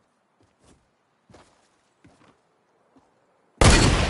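Footsteps thud quietly on the ground.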